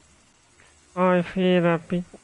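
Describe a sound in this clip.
A man speaks casually, close to a microphone.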